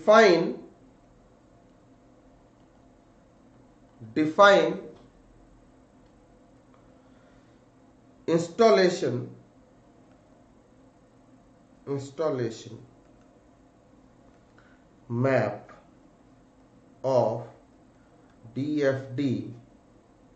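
A man speaks calmly in short phrases into a close microphone, with pauses between them.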